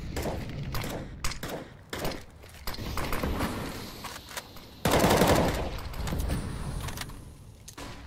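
A rifle fires in short, quick bursts.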